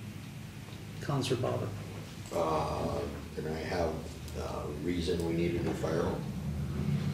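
An adult speaks calmly through a microphone.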